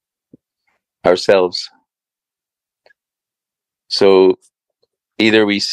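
A man speaks in short phrases over an online call.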